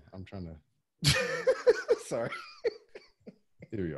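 A man laughs loudly over an online call.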